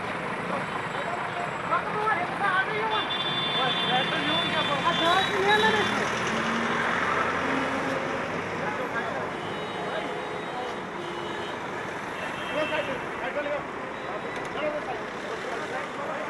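Traffic rumbles steadily along a street outdoors.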